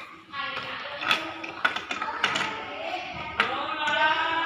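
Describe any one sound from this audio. Plastic toy pieces click and rattle as a small child turns them.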